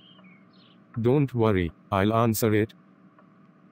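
A man speaks calmly in a synthetic voice.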